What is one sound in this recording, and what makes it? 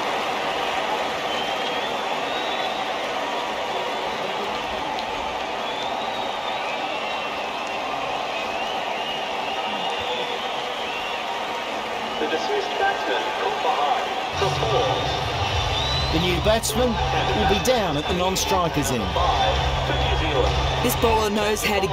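A large crowd cheers and whistles in a stadium.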